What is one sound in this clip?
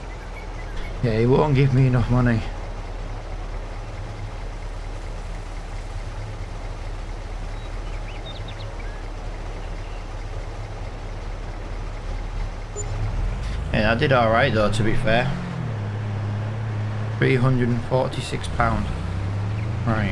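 A truck engine rumbles steadily and revs as it pulls away.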